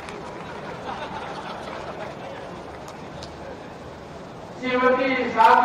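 A large seated crowd murmurs in the background.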